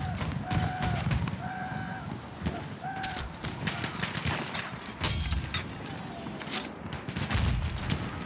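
Gunfire cracks in sharp bursts nearby.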